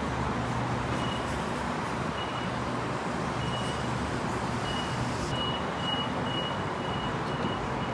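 A door warning tone beeps repeatedly.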